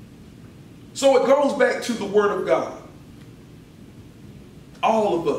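A middle-aged man speaks calmly and slowly into a microphone.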